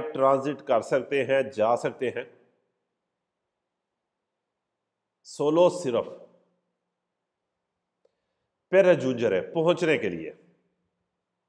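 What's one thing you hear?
A man speaks with animation close to a microphone, pausing between phrases.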